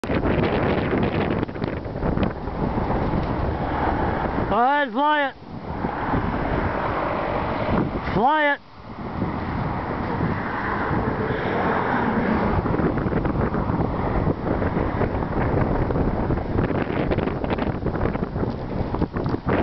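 Wind blows hard and gusts across the microphone outdoors.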